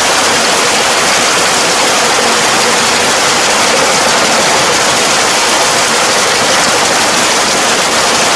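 A rotary tiller churns and splashes through wet mud.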